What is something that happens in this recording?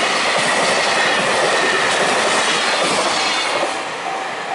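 A freight train rumbles past over the rails.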